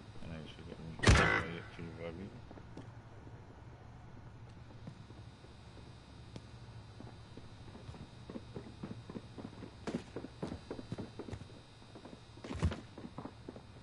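Gunfire cracks now and then, with loud single bangs.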